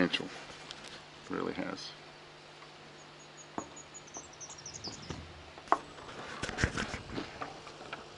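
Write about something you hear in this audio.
A phone clicks and knocks as it is fitted into a plastic handheld grip.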